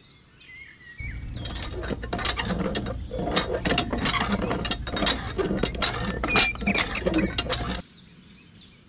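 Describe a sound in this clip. A small plastic hand pump creaks and clicks as its handle is worked up and down.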